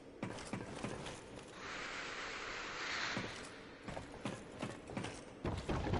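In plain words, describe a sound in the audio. Hands and feet knock on a metal ladder rung by rung.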